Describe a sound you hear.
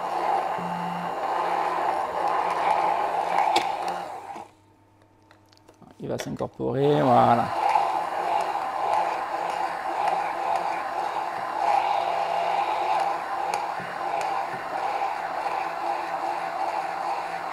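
A hand blender whirs steadily as it blends liquid in a jar, stopping briefly and starting up again.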